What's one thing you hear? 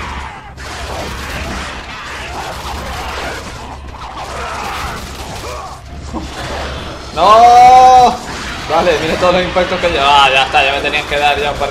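Flaming chained blades whoosh and slash through the air.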